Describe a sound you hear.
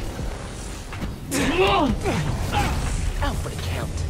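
Punches land with heavy thuds during a fight.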